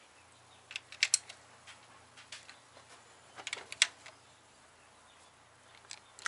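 A ratchet wrench clicks against metal.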